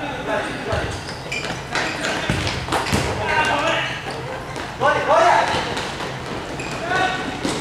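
Sneakers squeak on the floor.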